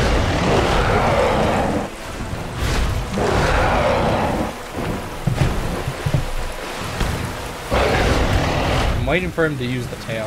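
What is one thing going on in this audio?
Wings beat with heavy whooshes.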